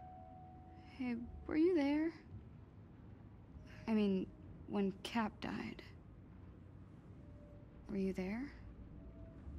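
A young woman speaks softly and hesitantly, close by.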